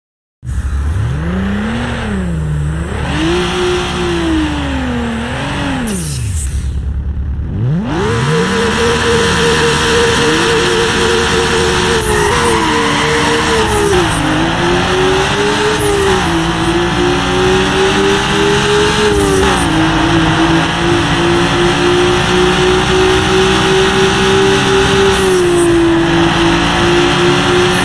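A sports car engine revs up and down, then roars faster through gear changes.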